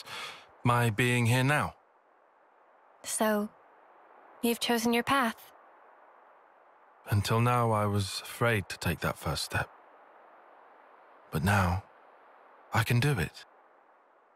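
A young man speaks calmly and seriously.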